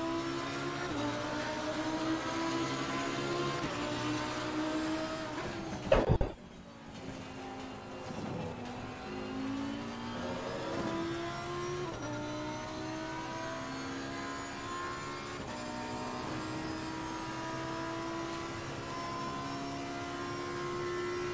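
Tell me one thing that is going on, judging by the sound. A racing car engine roars at high revs, rising in pitch and dropping sharply with each gear change.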